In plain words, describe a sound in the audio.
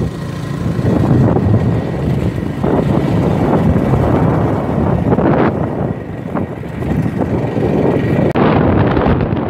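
A motorcycle engine hums while riding.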